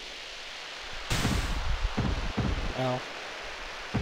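A snowboarder crashes into the snow with heavy thuds.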